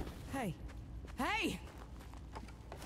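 A young woman calls out.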